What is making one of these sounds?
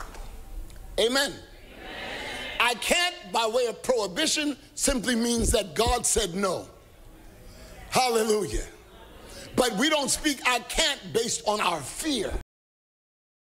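A man speaks with animation into a microphone, heard over loudspeakers.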